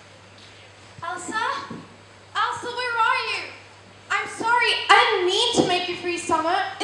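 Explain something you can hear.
A young girl speaks clearly and with expression in a large room.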